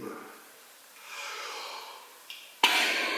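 A man breathes in deeply.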